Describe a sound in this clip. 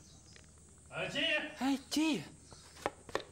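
A middle-aged man calls out with surprise.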